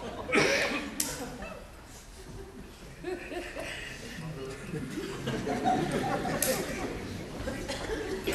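A man speaks on a stage, heard through a microphone.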